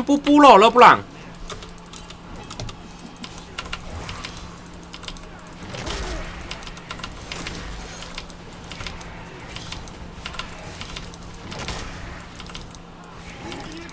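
Video game spell and hit sound effects crackle and clash.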